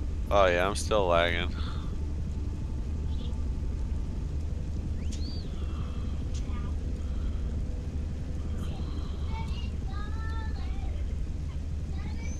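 Wind blows steadily outdoors.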